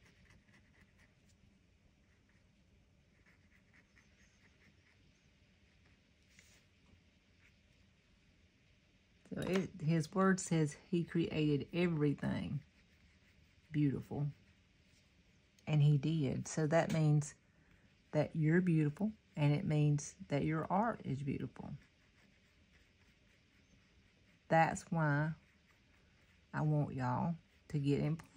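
A coloured pencil scratches softly on paper.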